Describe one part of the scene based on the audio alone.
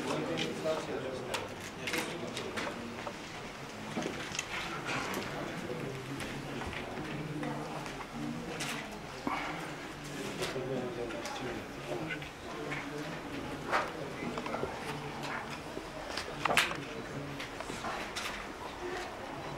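Men murmur quietly in the background of a room.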